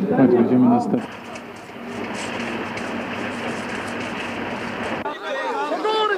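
A large crowd murmurs outdoors.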